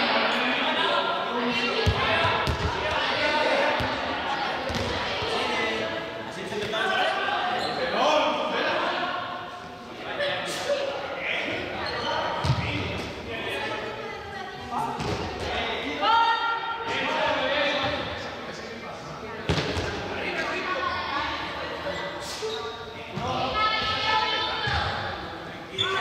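Young people shout and call out to each other in a large echoing hall.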